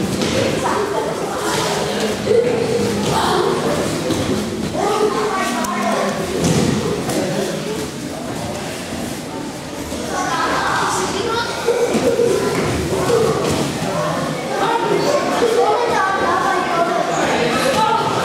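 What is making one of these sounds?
Bare feet shuffle and stamp on a padded mat.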